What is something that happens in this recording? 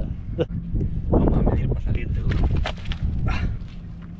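A large fish flops and slaps on concrete.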